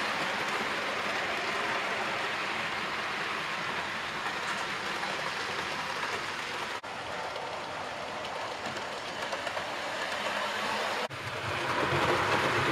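A model electric train rolls along metal rails.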